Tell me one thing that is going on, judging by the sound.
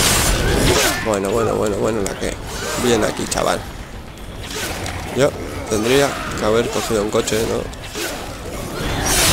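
A crowd of zombies groans and snarls close by.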